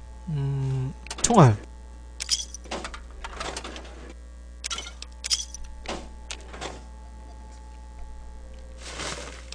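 Short electronic clicks and beeps sound.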